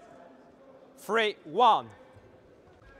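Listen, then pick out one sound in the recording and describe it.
Sports shoes squeak loudly on a hard court floor.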